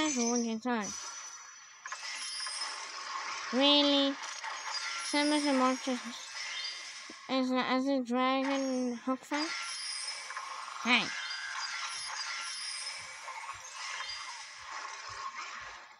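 A tablet game plays light music and sound effects.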